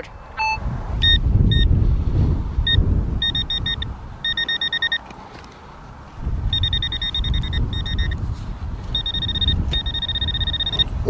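A handheld probe beeps in quick bursts.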